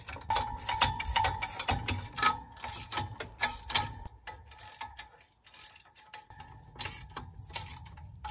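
Metal parts clink and clank.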